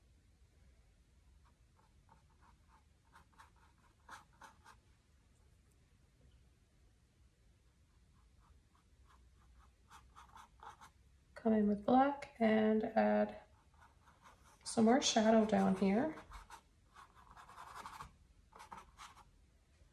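A paintbrush dabs on canvas.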